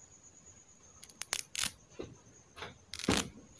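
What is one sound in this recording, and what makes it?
Fingers rub and fumble with a small hard disc close by.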